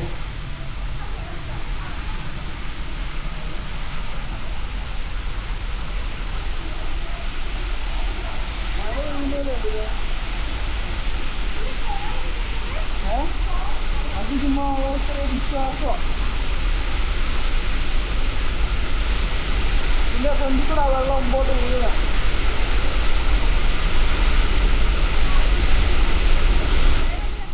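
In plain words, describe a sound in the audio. A waterfall roars steadily, echoing through a stone tunnel and growing louder.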